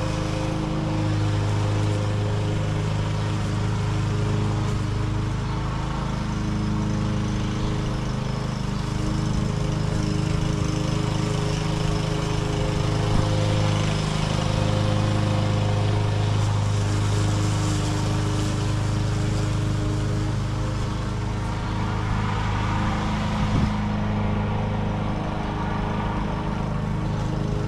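A lawn mower engine drones steadily at a distance.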